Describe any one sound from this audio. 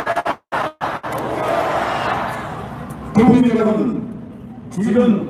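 A large crowd outdoors cheers and chants loudly.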